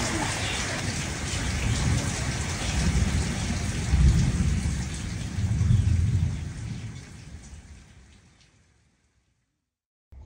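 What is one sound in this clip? Rain pours steadily outdoors, then fades away.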